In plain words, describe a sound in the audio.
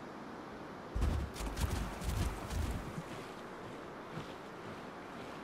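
A large animal splashes through water.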